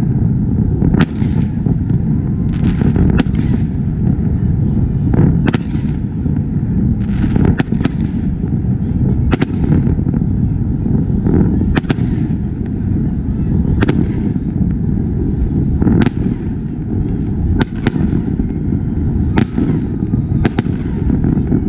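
Fireworks burst and bang loudly overhead, echoing off buildings.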